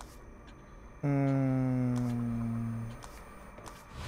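A low electronic tone sounds and slowly falls away.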